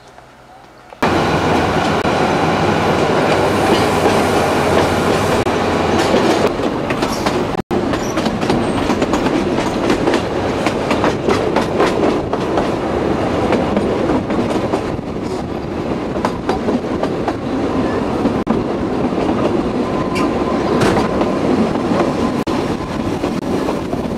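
A train rumbles along the tracks with rattling wheels.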